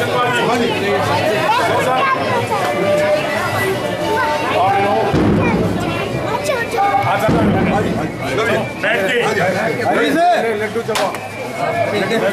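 A man speaks loudly and with animation through a microphone and loudspeakers, outdoors.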